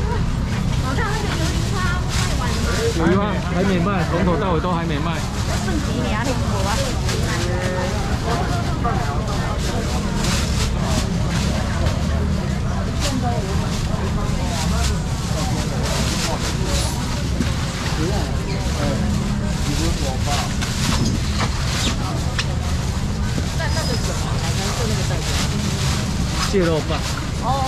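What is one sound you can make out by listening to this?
A plastic scoop scrapes and clatters against shellfish in a box.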